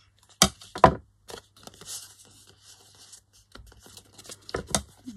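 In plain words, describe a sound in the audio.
Paper rustles and crinkles as hands fold it.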